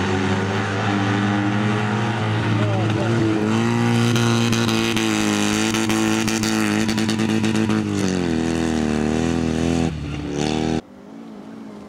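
A small car engine revs hard and roars past.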